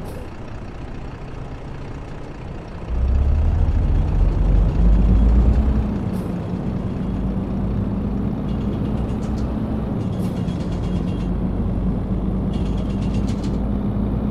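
A truck's diesel engine rumbles steadily and grows louder as it speeds up.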